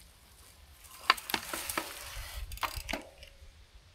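A bicycle clicks and rattles as it rolls up close.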